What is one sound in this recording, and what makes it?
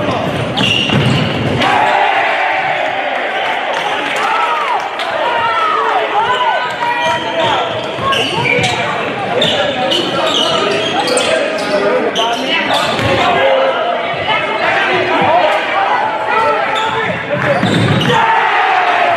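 A crowd in a large echoing gym murmurs and cheers.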